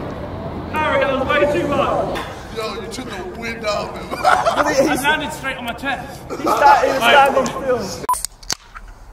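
Young men talk and shout excitedly.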